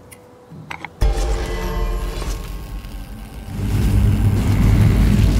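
A bright magical shimmer swells and rings out loudly.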